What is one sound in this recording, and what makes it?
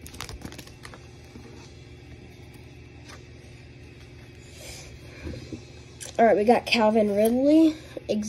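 Trading cards rustle and slide against each other as they are shuffled.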